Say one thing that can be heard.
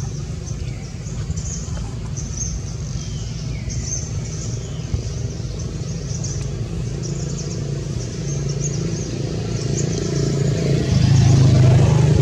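Dry leaves crunch under a monkey's feet.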